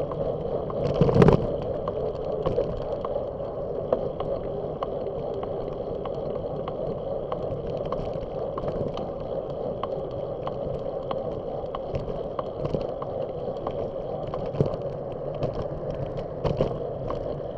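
A bicycle rolls along a paved road with a steady hum of tyres.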